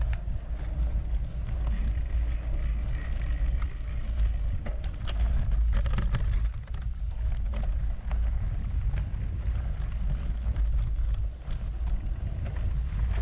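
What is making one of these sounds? A bicycle's parts clatter over bumps.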